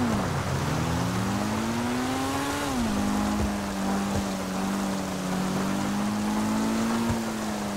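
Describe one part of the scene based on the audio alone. Rain hisses steadily on the road.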